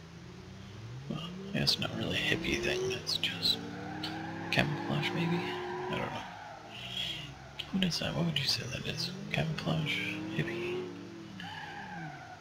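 A van engine revs as the van pulls away.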